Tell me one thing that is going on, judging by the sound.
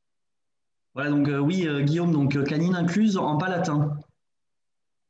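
A young man talks calmly over an online call.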